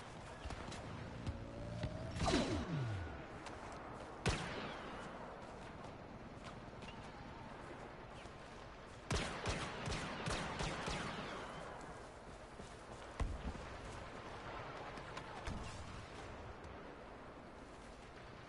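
Distant gunfire crackles in a forest.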